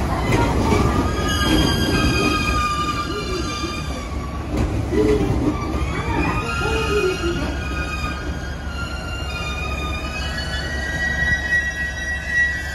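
Train brakes squeal in high, wavering tones as a train slows to a stop.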